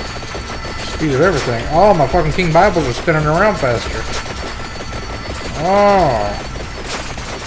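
A man speaks in a playful, sing-song voice close to a headset microphone.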